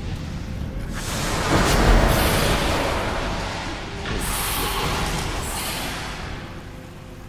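A fiery blast roars and whooshes.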